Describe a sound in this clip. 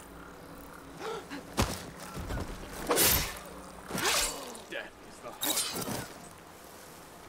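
A man shouts excitedly into a close microphone.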